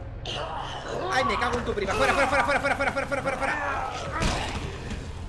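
A man grunts and groans in strain.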